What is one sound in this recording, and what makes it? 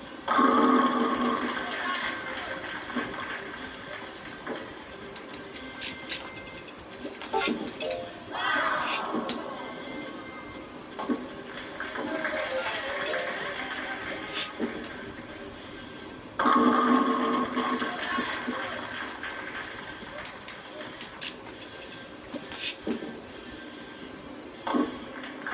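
Bowling pins crash loudly through a television speaker.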